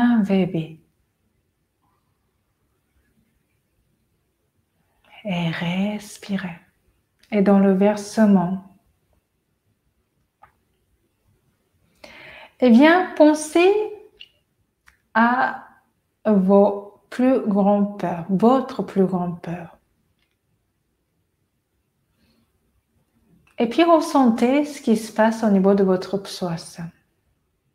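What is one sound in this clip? A woman speaks calmly and slowly, with long pauses, close to a microphone.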